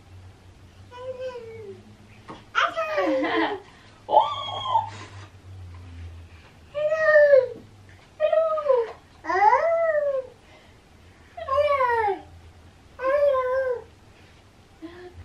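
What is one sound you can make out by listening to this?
A woman sings playful sliding calls up close.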